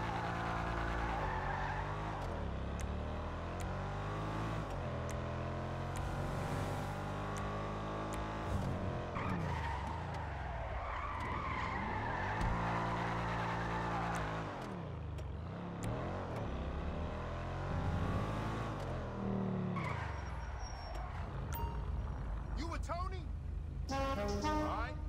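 A car engine hums steadily as a car drives along a street.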